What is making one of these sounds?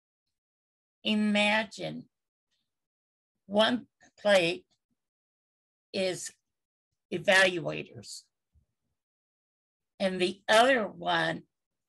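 An older woman speaks with animation in short bursts over an online call.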